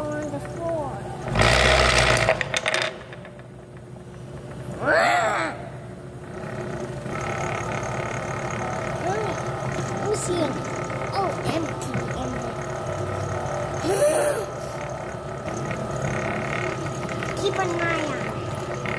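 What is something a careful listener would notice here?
A small boy talks close by with animation.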